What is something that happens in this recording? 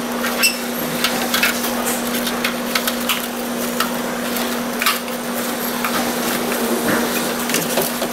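A plastic panel clicks and clatters as it is handled.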